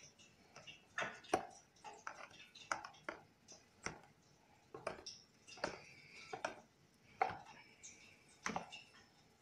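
A fork clinks and scrapes against a plastic tub.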